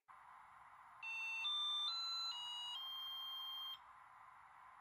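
An electronic charger plays a short melody of beeps.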